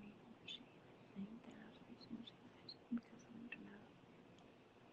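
A woman speaks quietly close to a phone microphone.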